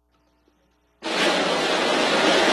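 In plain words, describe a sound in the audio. A large orchestra plays loudly in a big open space.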